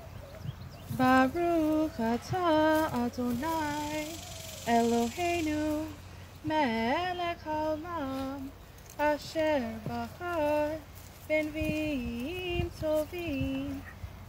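A woman sings a slow chant nearby, heard through a microphone.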